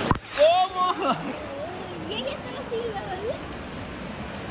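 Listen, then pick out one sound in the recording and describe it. A boy shouts and laughs close by.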